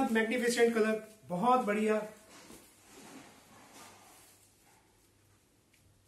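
Fabric rustles as it is spread out.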